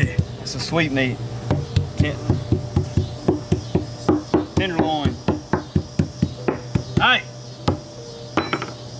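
A meat tenderizer mallet pounds meat on a wooden board with rapid thuds.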